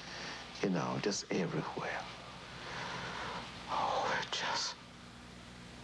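A man speaks with emotion close by.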